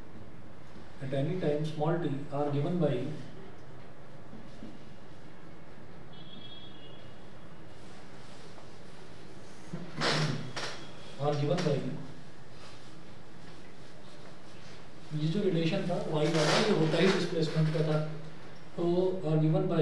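A man speaks calmly nearby, explaining in pauses.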